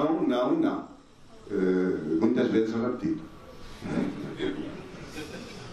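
A middle-aged man speaks with emotion into a microphone.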